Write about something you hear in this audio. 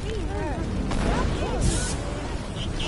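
An explosion bursts with a sharp crack.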